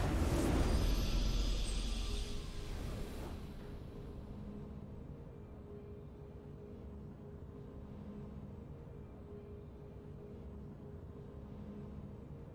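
A triumphant fanfare plays softly.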